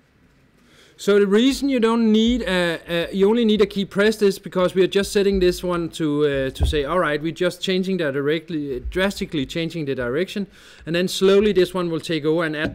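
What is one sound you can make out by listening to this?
A man speaks calmly and with animation close to a microphone.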